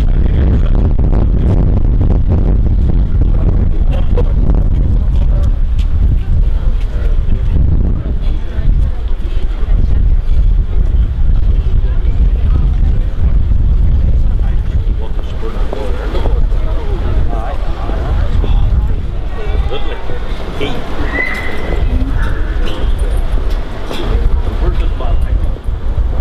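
Footsteps shuffle on pavement outdoors in gusty wind.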